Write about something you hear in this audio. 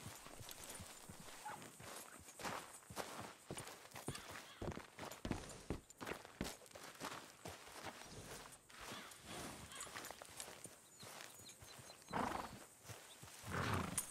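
Boots crunch on gravel as a man walks.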